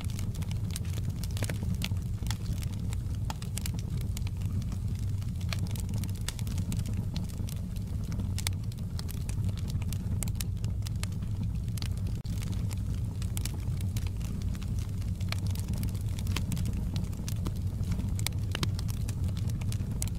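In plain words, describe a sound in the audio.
Burning logs crackle and pop.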